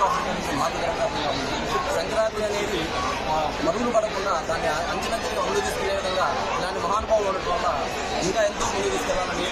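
A large crowd murmurs in the background outdoors.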